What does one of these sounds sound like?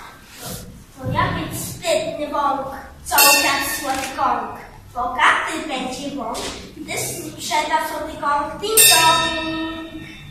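A young child speaks loudly and with animation in an echoing hall.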